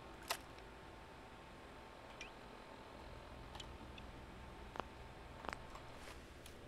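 Soft electronic clicks and beeps sound from a handheld device's menu.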